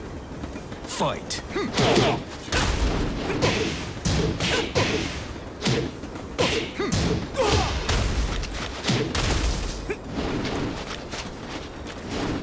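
Punches and kicks land with heavy, rapid thuds and smacks.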